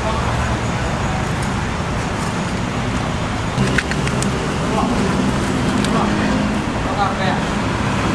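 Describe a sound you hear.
A cleaver taps and scrapes on a wooden chopping block.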